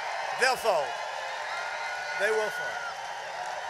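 A man in the crowd shouts loudly close by.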